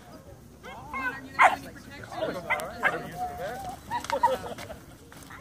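A young dog barks.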